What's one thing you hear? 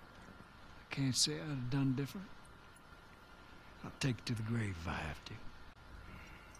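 A second man answers in a low, calm voice.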